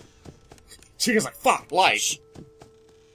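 A young man shouts into a headset microphone.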